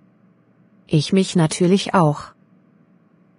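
A woman speaks calmly and briefly.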